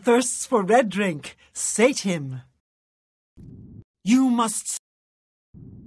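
A woman speaks in a low, menacing voice, close by.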